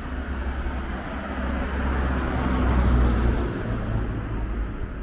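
A car passes close by, rising and fading.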